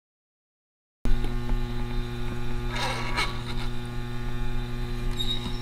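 An electrical unit hums steadily.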